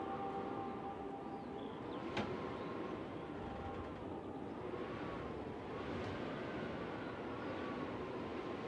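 An accordion plays soft, held chords.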